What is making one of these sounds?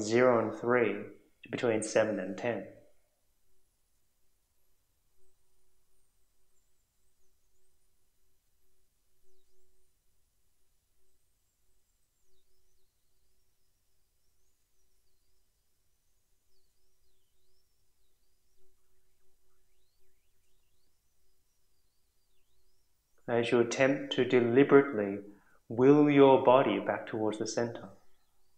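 A man speaks calmly and slowly, with a long pause.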